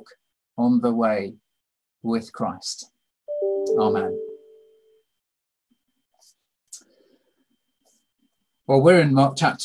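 A middle-aged man speaks calmly over an online call, in short phrases with pauses.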